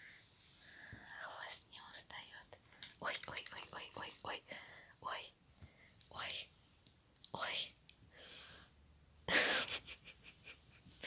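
Fabric rustles as a cat shifts and steps about on a lap.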